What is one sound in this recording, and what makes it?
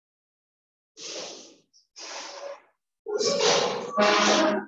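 A cloth duster rubs across a chalkboard.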